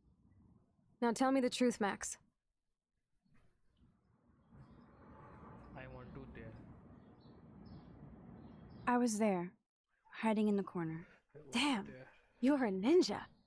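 A young woman asks something in a firm, low voice.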